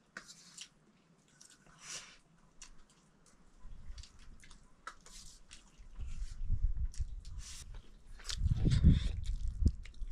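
A spoon clinks and scrapes against a metal plate.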